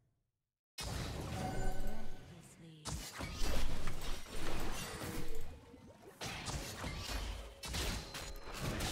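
Game sound effects of spells and blows play.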